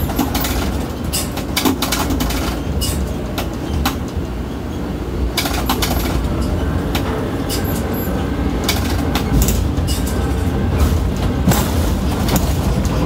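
A crane's motors drone with a steady low rumble.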